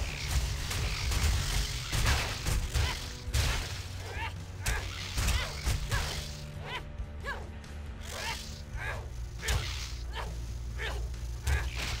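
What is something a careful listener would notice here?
Weapon blows and hits land with short sharp impacts.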